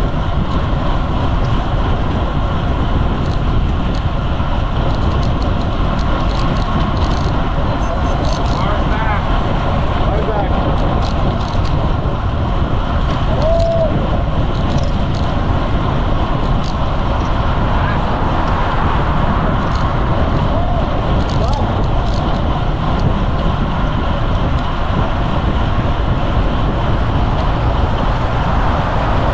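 Bicycle tyres hum on asphalt.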